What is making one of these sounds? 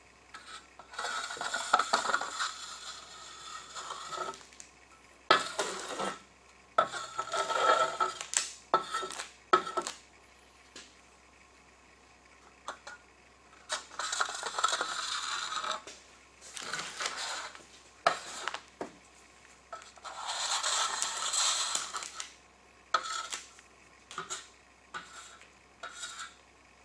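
A plastic spreader scrapes across a wet, sticky surface in bursts.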